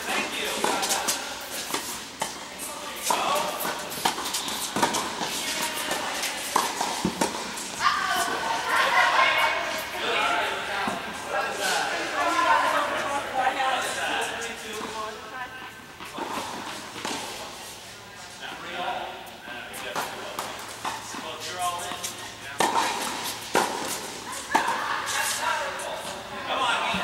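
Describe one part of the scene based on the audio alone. Tennis rackets hit balls in a large echoing indoor hall.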